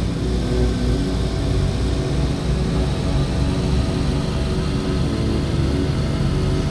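A van engine hums steadily as the van drives along.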